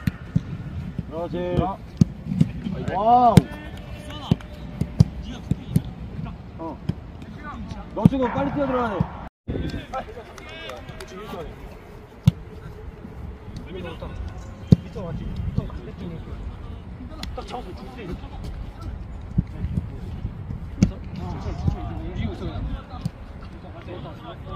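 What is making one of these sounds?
Young men shout and call out nearby, outdoors.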